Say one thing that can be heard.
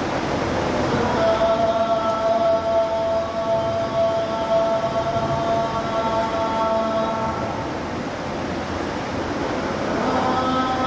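An elderly man recites in a drawn-out, chanting voice through a microphone.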